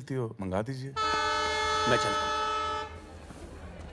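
A train horn blares loudly and steadily.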